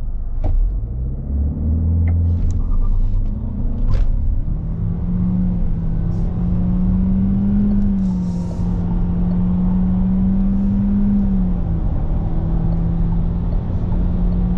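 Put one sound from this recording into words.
A car engine hums and rises in pitch as the car pulls away and speeds up.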